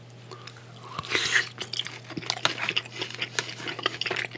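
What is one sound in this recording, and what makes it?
A man chews food wetly and close to a microphone.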